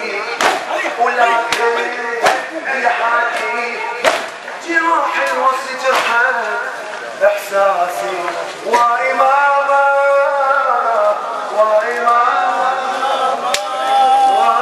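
Men beat their chests with rhythmic thuds.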